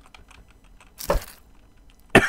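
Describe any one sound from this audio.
A knife chops through meat with a sharp thud.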